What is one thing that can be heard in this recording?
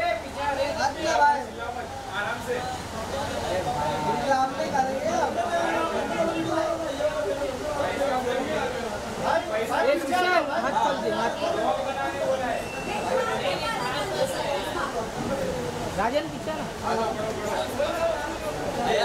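A crowd of men and women chatter and call out close by, echoing in a hall.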